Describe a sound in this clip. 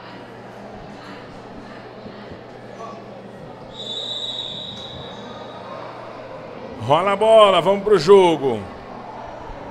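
A crowd murmurs in an echoing indoor hall.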